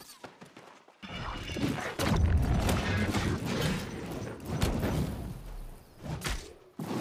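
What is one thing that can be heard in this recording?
Blades slash and strike hard in a close fight.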